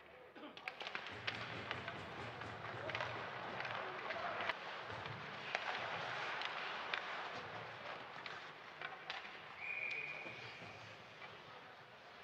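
Sticks clack against a puck.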